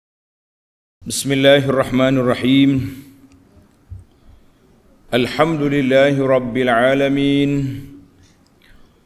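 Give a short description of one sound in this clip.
A middle-aged man recites in a slow, melodic chant close to a microphone.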